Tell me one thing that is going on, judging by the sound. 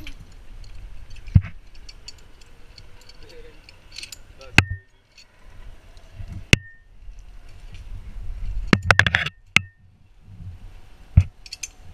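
Metal carabiners and clips clank and click.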